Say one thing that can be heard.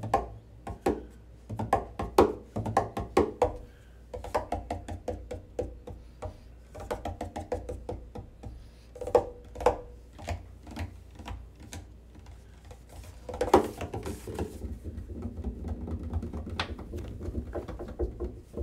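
A double bass's strings hum and resonate low.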